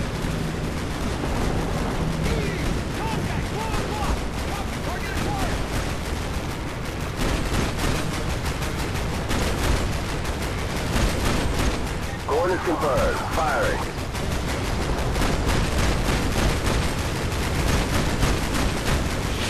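Explosions boom and rumble nearby without pause.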